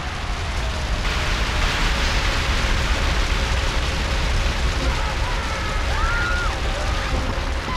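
A car fire roars and crackles.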